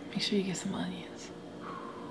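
A woman speaks close to a microphone with animation.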